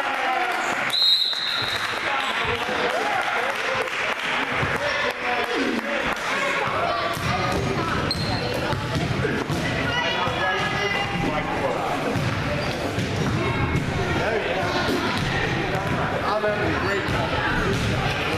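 A crowd of children and adults cheers and chatters loudly in a large echoing hall.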